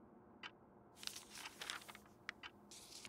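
A page of a book rustles as it turns.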